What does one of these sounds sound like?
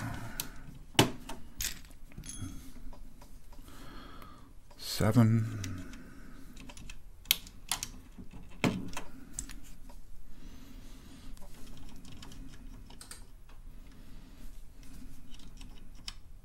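Keyboard keys click as they are pressed.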